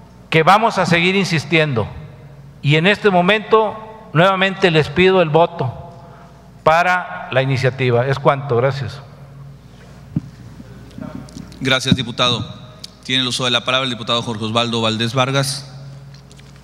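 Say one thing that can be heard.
A middle-aged man speaks forcefully into a microphone in a large echoing hall.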